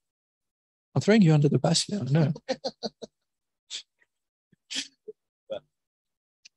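A man speaks into a microphone in short bursts with pauses.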